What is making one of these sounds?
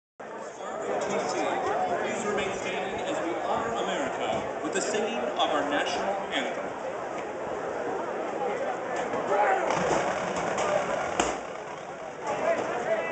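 A marching band plays brass and woodwind instruments outdoors.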